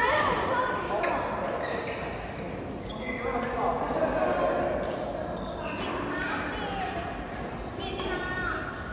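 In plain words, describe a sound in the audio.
Rackets strike a shuttlecock with sharp pops in an echoing hall.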